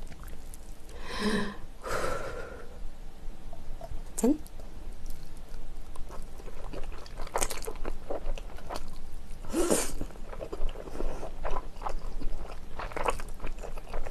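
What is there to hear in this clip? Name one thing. A young woman slurps noodles close to the microphone.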